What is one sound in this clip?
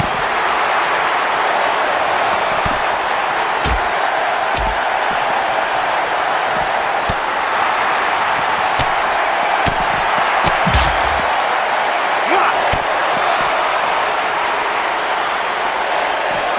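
Fists and bodies thud together in a scuffle.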